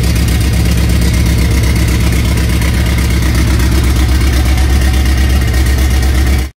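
A car engine idles with a loud, rough, steady pulsing rumble close by.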